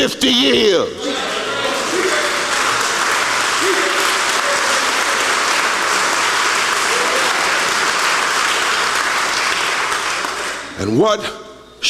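A large crowd applauds loudly.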